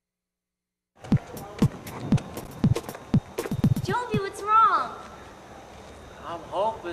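A young woman talks with animation outdoors.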